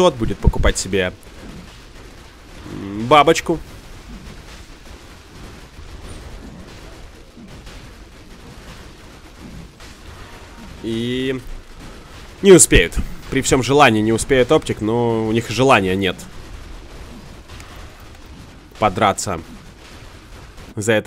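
Game spells and weapon blows clash in a battle.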